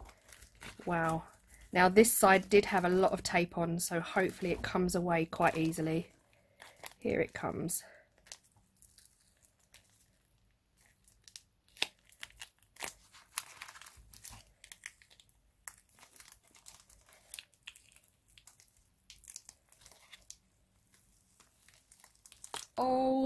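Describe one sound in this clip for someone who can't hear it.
A soft rubber mould peels and rustles as hands pull it apart.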